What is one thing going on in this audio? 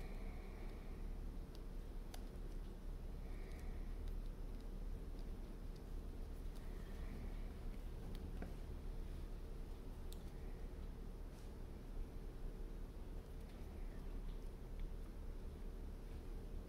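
Fingers softly knead and squeeze soft clay.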